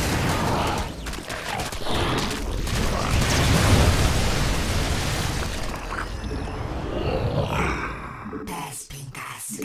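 Rapid gunfire rattles in a busy battle.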